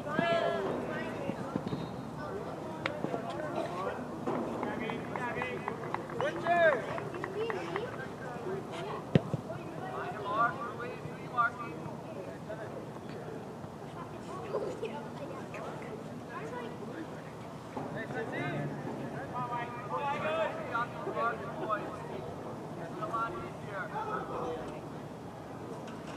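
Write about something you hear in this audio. Young men shout to each other outdoors across a field.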